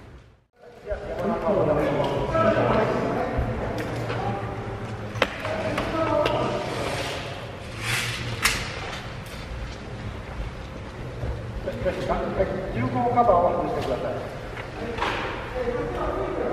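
A man talks in a large echoing hall.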